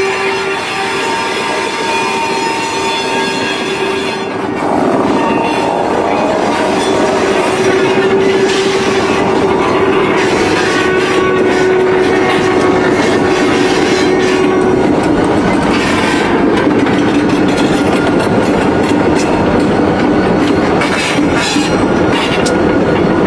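Steel wheels clatter and squeal on the rails.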